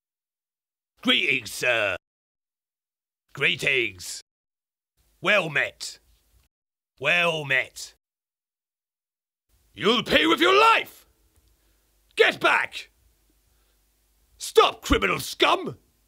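A man speaks expressively into a microphone in short bursts with pauses between them.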